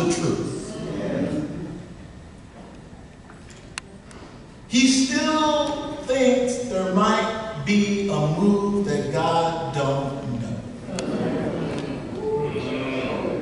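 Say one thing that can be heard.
A man speaks with animation through a microphone in a large echoing room.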